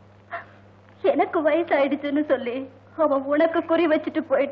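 A middle-aged woman speaks tearfully and pleadingly close by.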